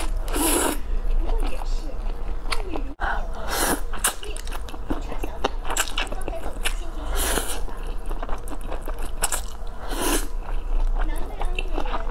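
A young woman chews wet food with smacking sounds close up.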